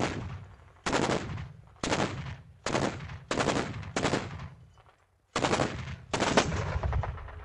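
A quad anti-aircraft autocannon fires in short bursts.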